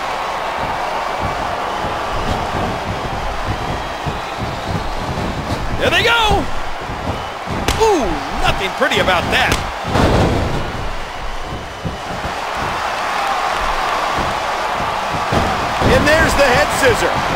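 A large arena crowd cheers and roars.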